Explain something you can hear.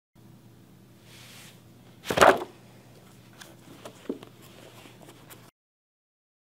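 A sheet of paper rustles and crinkles.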